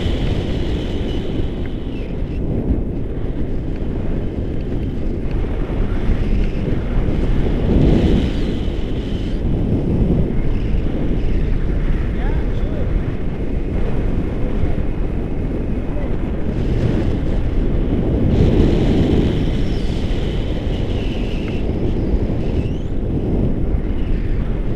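Strong wind rushes and buffets loudly past a microphone outdoors.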